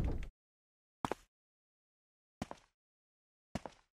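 Booted footsteps clack slowly on a hard floor.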